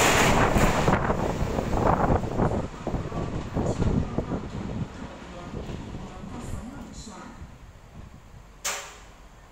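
Train wheels clatter over the rails and slowly fade into the distance.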